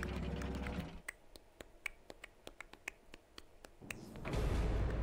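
A game's score counter ticks rapidly as points add up.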